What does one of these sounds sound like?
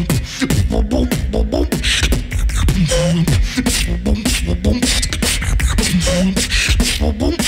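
A young man raps fast into a microphone.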